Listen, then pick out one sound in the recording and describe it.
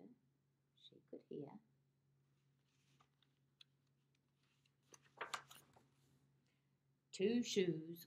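A woman reads aloud calmly, close to a microphone.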